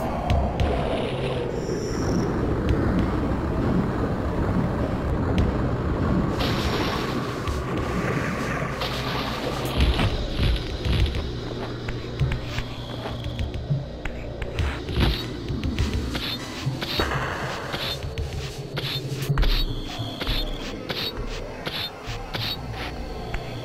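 A glowing blade crackles and hums.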